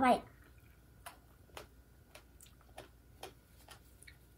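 A woman chews food with soft smacking sounds.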